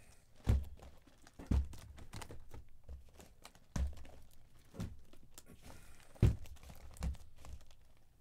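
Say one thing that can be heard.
Cards are laid down and slide on a tabletop with soft thumps and shuffling.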